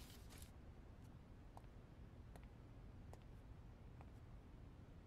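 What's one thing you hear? Soft footsteps tap along a hallway.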